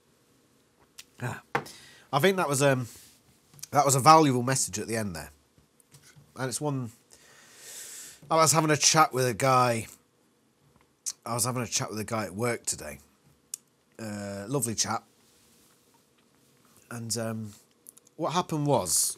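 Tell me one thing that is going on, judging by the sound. A man talks calmly and close up, with pauses.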